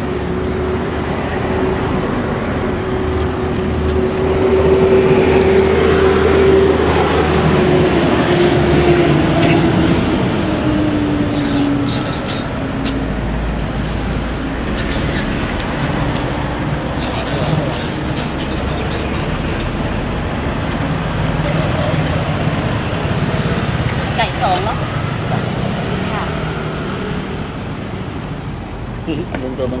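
Street traffic rumbles outdoors.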